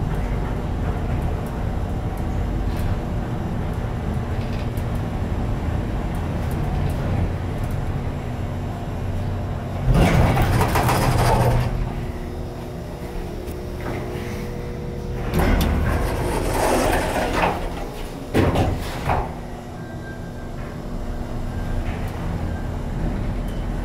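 An elevator hums steadily.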